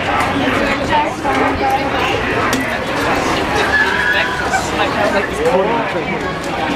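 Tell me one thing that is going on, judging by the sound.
A crowd of people chatters and talks.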